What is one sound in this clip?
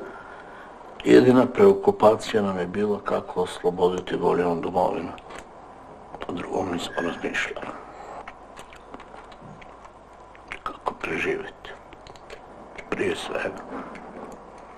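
A middle-aged man speaks quietly and haltingly nearby.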